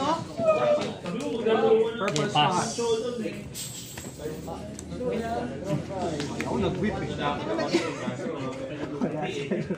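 Cards tap lightly as they are set down on a soft mat.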